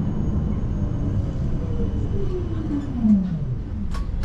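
Tram brakes squeal with a falling pitch as the tram slows.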